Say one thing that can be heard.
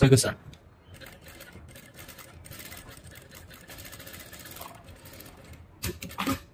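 A sewing machine runs, stitching steadily.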